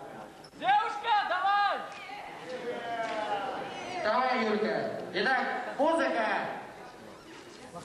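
A young man shouts with energy through a microphone and loudspeakers in a large echoing hall.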